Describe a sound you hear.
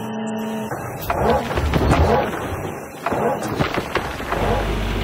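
Rocks and dirt clatter and scrape in a digging bucket.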